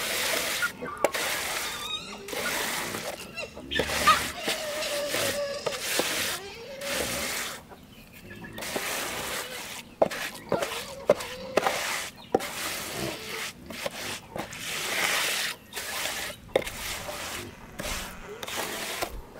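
A trowel scrapes and rasps across wet concrete.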